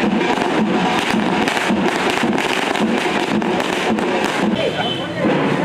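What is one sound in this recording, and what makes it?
Firecrackers crackle and pop in rapid bursts outdoors.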